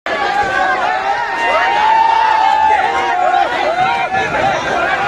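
A large crowd of men shouts and cheers loudly outdoors.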